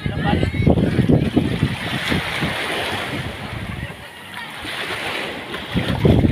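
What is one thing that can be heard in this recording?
Water laps gently against a wooden boat.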